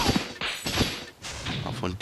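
A small dragon breathes a short burst of flame.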